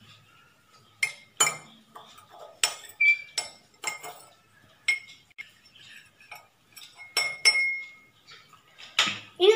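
A metal spoon clinks against a glass.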